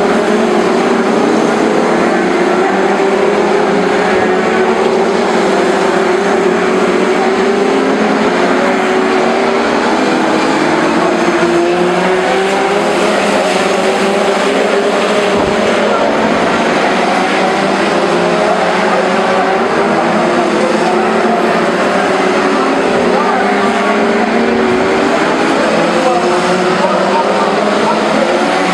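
A pack of F2 stock cars races at full throttle, their engines roaring.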